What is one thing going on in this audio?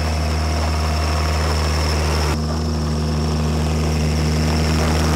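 A small engine rumbles steadily up close.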